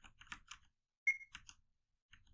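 A short bright chime rings.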